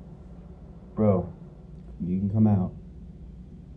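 A young person speaks into a headset microphone.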